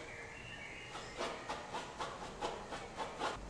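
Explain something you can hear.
A brush taps and dabs lightly on a canvas.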